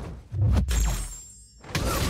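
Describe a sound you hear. Electric energy crackles and buzzes.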